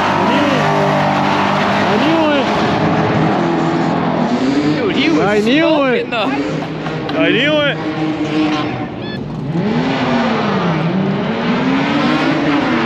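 Race car engines roar and rev loudly, rising and falling in pitch.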